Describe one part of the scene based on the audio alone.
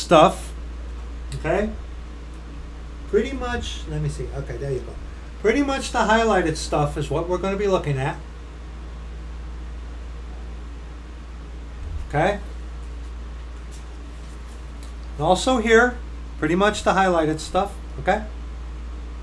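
A middle-aged man reads aloud calmly, close to a microphone, with pauses.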